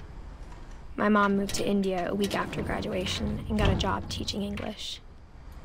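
A window creaks as it slides open.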